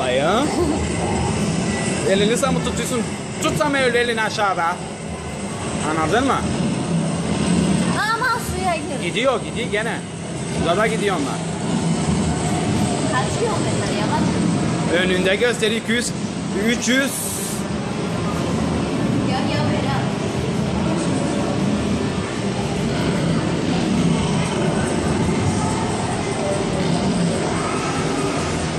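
An arcade racing game roars with engine noise and loud music.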